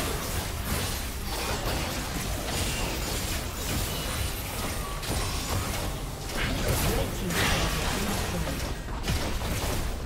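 Game battle effects crackle, whoosh and blast in quick bursts.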